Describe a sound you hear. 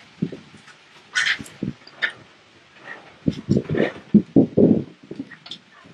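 A baby monkey squeaks softly up close.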